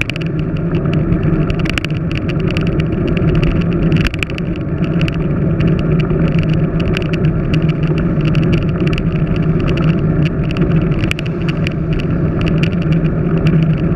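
Road bicycle tyres hum on asphalt.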